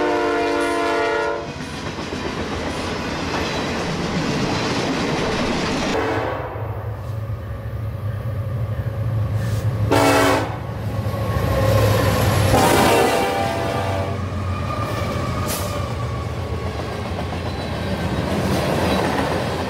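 Freight wagon wheels clatter over rail joints.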